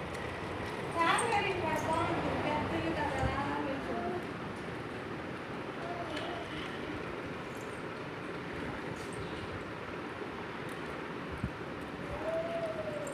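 A woman speaks in a high, sing-song voice nearby.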